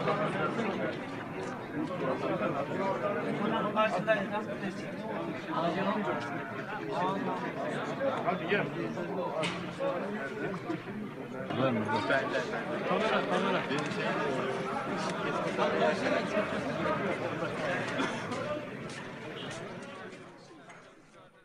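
A crowd of men talks loudly outdoors.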